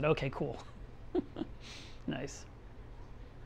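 A man laughs briefly.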